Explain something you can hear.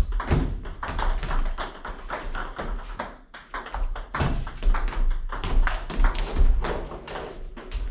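A table tennis ball clicks back and forth between paddles and a table.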